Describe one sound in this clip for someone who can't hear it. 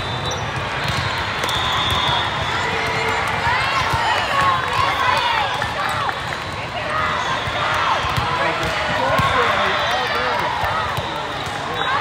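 Young girls call out to each other on a court.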